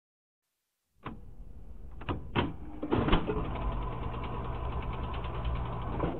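A record player's mechanism clunks and whirs as a record drops onto the turntable.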